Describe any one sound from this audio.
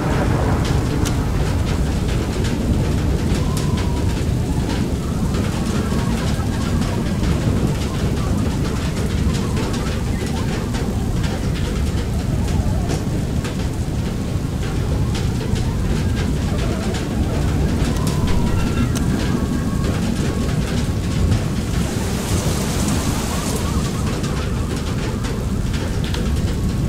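Wind roars low and constant.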